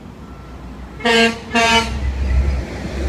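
A truck honks its horn twice, loud and close.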